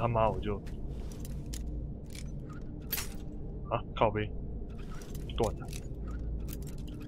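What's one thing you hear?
A lock pick scrapes and clicks inside a lock.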